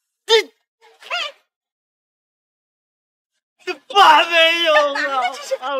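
A middle-aged woman shouts angrily nearby.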